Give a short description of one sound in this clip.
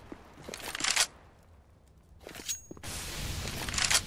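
A knife is drawn with a short metallic swish.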